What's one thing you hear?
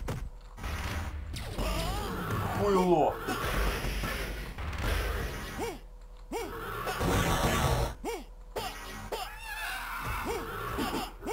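Fighters grunt and yell as they strike.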